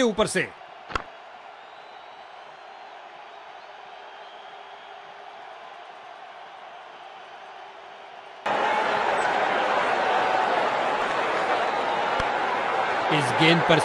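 A large stadium crowd cheers with a steady roar.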